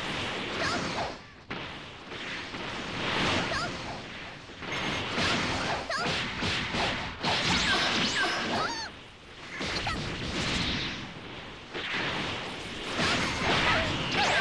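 Punches and kicks land with heavy thuds.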